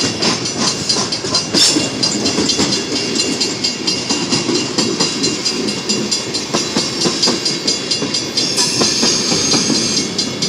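Wheels click rhythmically over rail joints.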